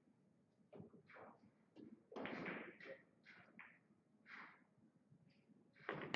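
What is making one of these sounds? Billiard balls clack together and roll across the table.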